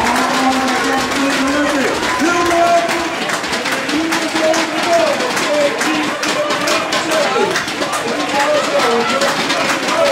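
Running footsteps slap quickly on a track.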